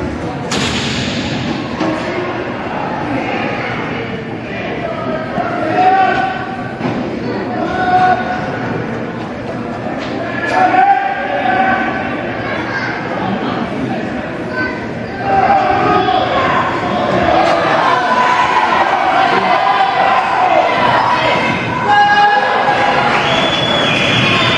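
A crowd of spectators cheers and shouts in a large echoing hall.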